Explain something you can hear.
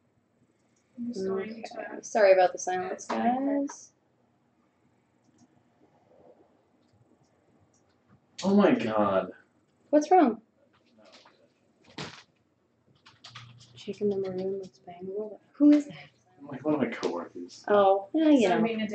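A young woman talks casually and close by, with pauses.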